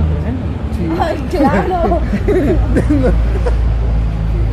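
Young people laugh loudly close by.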